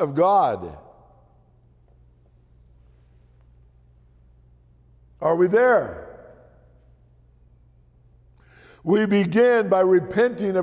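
An elderly man speaks slowly through a microphone, in a room with some echo.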